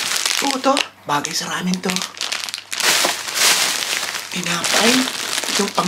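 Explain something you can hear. A plastic wrapper crinkles.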